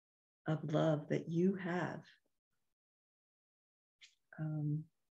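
An older woman speaks calmly into a microphone over an online call.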